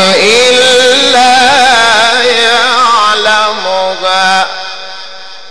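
A man chants in a loud, melodic voice through a microphone, with echo fading after him.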